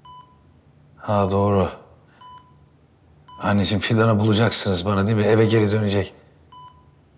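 A man speaks weakly and slowly, close by.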